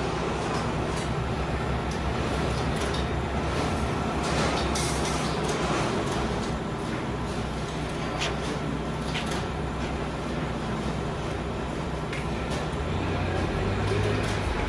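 Wire cage panels rattle and clank as they are folded and pressed.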